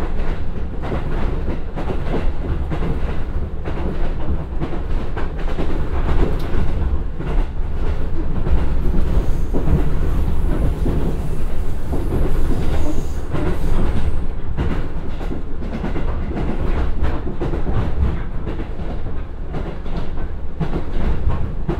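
A diesel train engine rumbles steadily.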